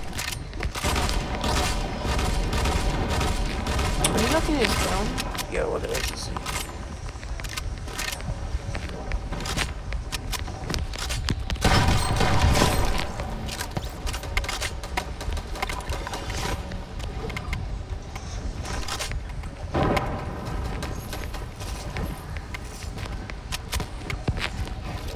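Sharp game gunshots and building clacks crack in quick bursts.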